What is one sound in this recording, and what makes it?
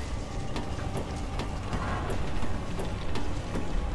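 Hands and feet clang on a metal ladder.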